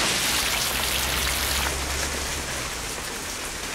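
Rain patters steadily on wet pavement.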